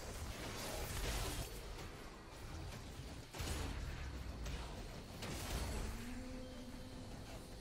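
Video game battle effects whoosh and crash.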